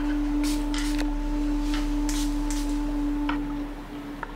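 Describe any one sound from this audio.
Small tools clink together.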